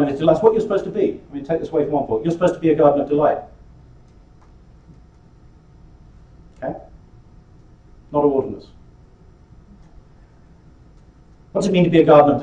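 A man lectures calmly in a small room, heard through a microphone, pausing between phrases.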